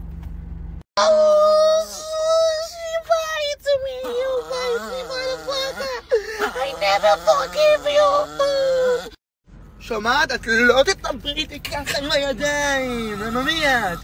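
A young man howls along loudly.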